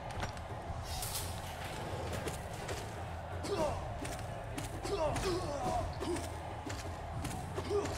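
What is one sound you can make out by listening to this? Sharp slashing and hitting sounds of a video game fight ring out again and again.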